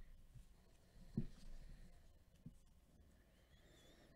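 Trading card packs rustle and tap softly as they are handled.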